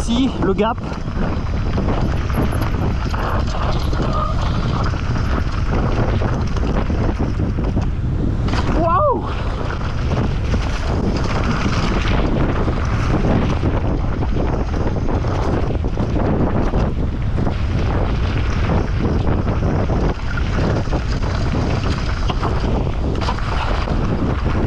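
A bicycle frame and chain rattle over rough bumps.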